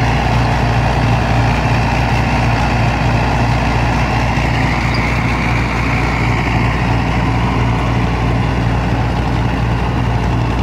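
A rotary tiller churns through soil with a rattling grind.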